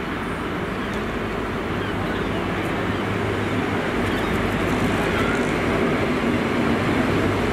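A diesel train engine rumbles as it approaches, growing louder.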